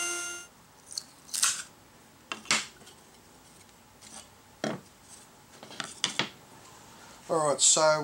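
Wooden pieces knock and tap against a table.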